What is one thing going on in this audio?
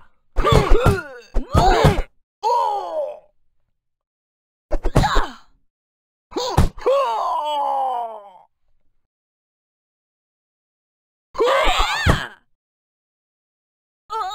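Punches land with quick cartoon thuds.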